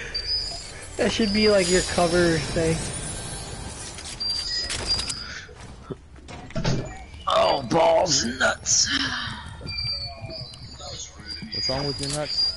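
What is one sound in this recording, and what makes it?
Short bright chimes ring out as items are picked up.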